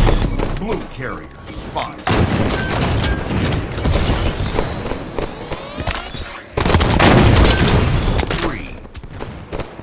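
Gunfire and energy blasts crackle loudly in rapid bursts.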